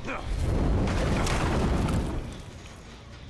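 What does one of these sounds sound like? A machine explodes with a loud roaring blast.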